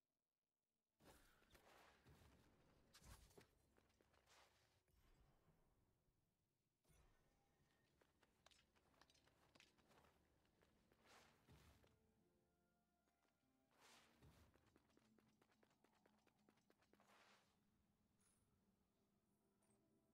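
Quick footsteps patter over stone and wood.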